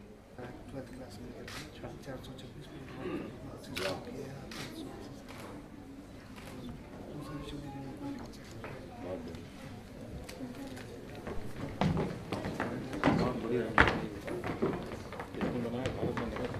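An elderly man talks softly and calmly close by.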